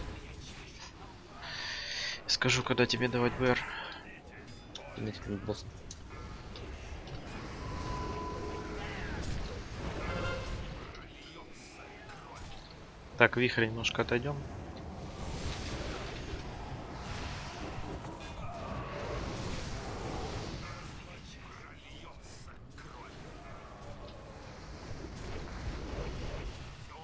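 Fantasy battle sounds of spells and weapons clash and crackle throughout.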